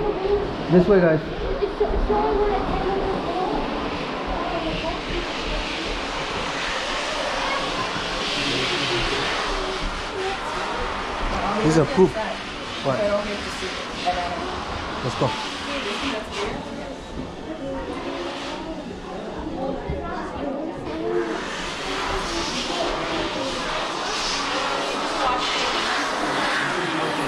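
Men and women talk nearby.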